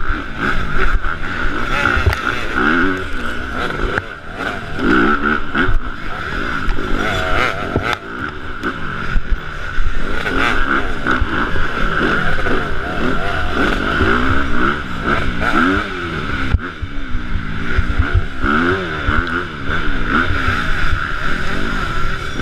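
Other dirt bikes buzz nearby.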